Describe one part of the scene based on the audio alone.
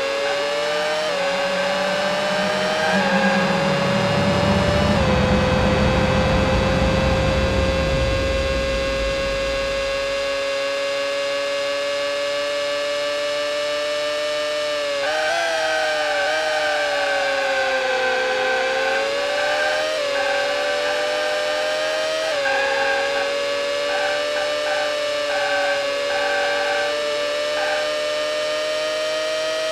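A racing car engine whines steadily, rising in pitch as it speeds up and dropping as it slows for corners.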